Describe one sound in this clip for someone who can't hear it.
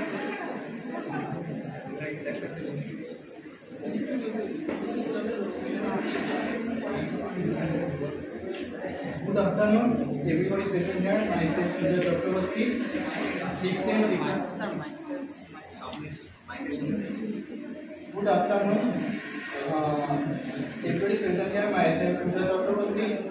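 A young man speaks steadily into a microphone, heard through a loudspeaker in an echoing room.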